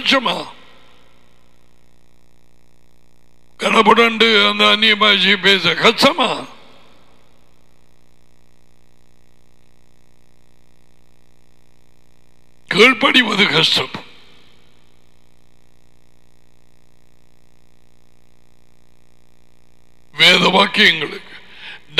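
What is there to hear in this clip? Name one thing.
An elderly man speaks into a headset microphone in short, emphatic bursts with long pauses.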